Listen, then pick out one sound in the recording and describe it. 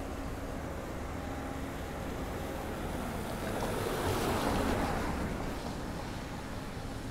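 A car drives past on a wet road, its tyres hissing as it comes close and fades away.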